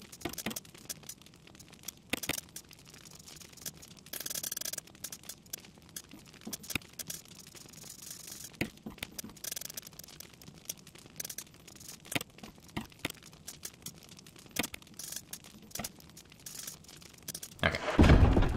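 Soft menu clicks tick in quick succession.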